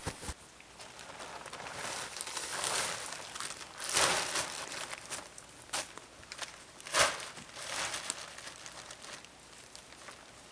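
A plastic tarp rustles and crinkles as it is pulled and tugged.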